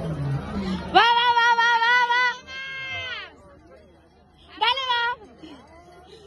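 A woman cheers in a high voice close by.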